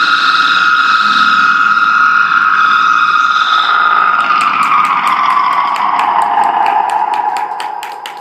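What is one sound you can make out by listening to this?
A wind instrument plays a long, held, shrill note that slowly slides lower and then fades.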